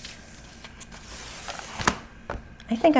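A paper sheet peels away from a plastic sheet with a crackle.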